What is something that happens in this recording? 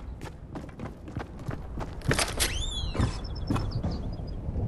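A pickaxe strikes a wooden wall.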